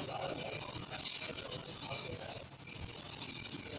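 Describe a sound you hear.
Metal tools clink and tap against a motorbike.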